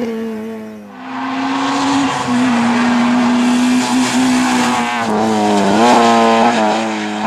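A second rally car accelerates hard at high revs.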